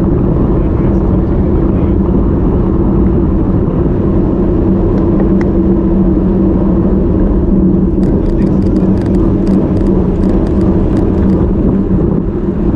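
Bicycle tyres hum steadily on asphalt.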